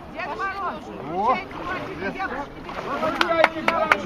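Water splashes as a man climbs out of an icy pool.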